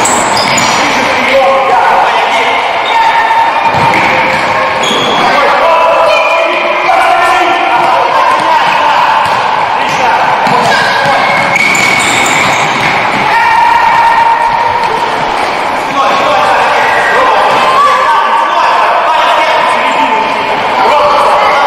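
Young boys shout to each other in a large echoing hall.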